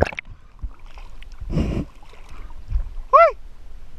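Water splashes and sloshes at the surface.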